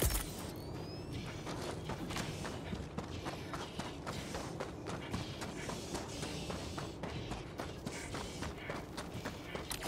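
Footsteps crunch quickly over rocky ground.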